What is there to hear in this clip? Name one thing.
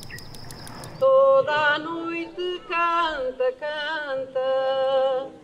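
A group of women sing together outdoors through loudspeakers.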